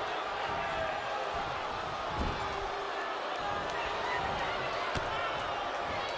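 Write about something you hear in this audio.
Blows thud as wrestlers strike each other.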